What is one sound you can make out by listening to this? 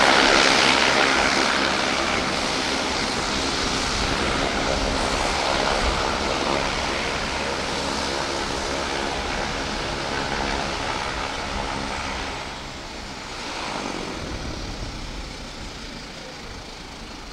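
A Saab 340 turboprop taxis past, its propellers droning with a turbine whine that slowly fades.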